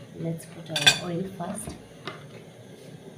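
A metal knife and spoon clink against a plate.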